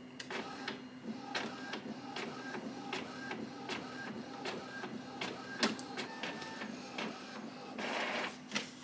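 A scanner whirs and clicks steadily as its scan head moves.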